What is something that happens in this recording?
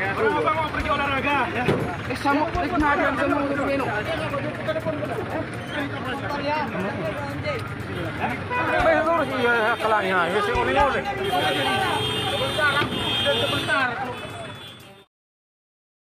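Several men talk and shout over one another outdoors, close by.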